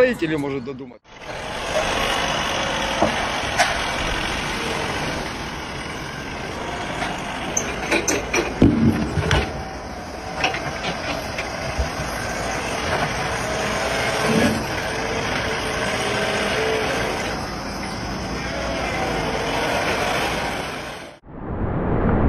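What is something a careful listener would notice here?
A forklift engine hums steadily.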